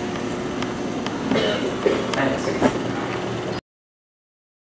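Footsteps tap on a hard floor in an echoing corridor.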